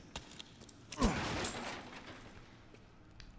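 A wooden crate smashes apart.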